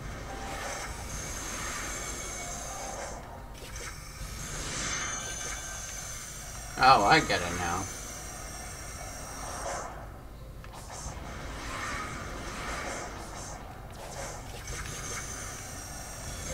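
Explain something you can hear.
Video game music and effects play throughout.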